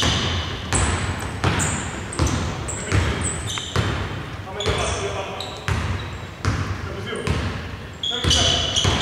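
A basketball bounces on a wooden court, echoing in a large hall.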